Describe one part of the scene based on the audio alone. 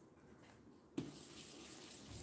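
A hand rubs across paper.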